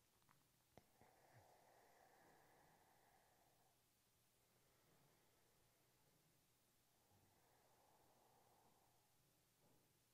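A young woman speaks softly into a close microphone.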